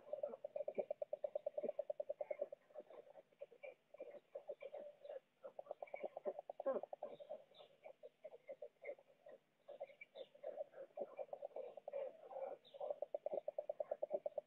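Twigs and straw rustle as stork chicks shuffle about.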